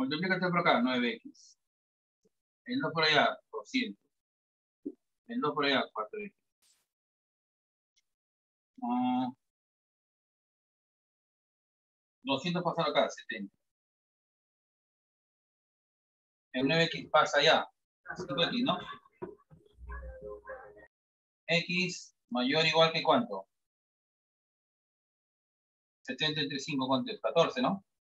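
A man speaks calmly in short phrases close by.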